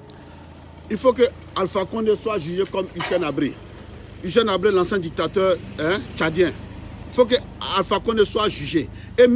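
A man speaks with animation close to the microphone.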